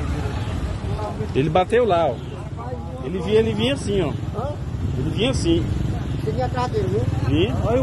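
A man and a woman talk excitedly nearby.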